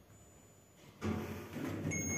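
A lift button clicks.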